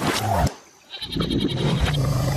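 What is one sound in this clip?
A crocodile growls.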